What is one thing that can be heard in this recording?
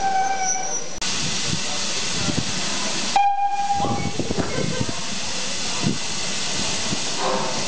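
A steam locomotive hisses loudly.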